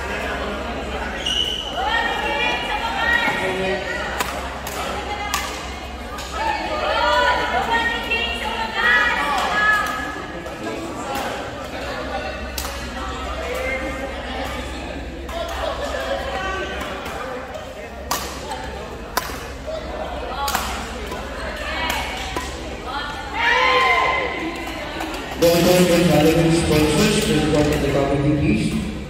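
Women talk and call out nearby in a large echoing hall.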